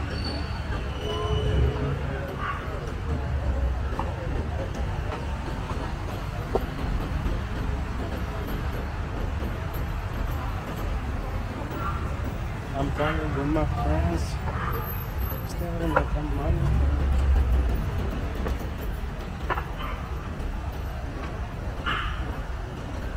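Street traffic hums steadily in the background outdoors.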